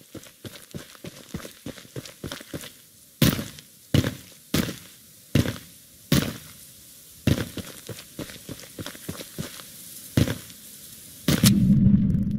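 Footsteps crunch through dry grass at a steady walking pace.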